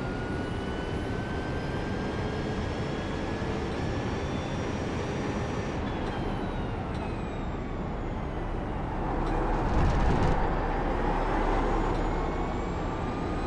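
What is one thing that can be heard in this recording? A racing car engine roars steadily, rising and falling in pitch as it shifts gears.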